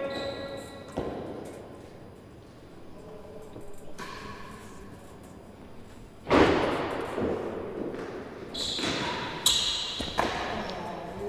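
A ball strikes a racket with a sharp crack in an echoing hall.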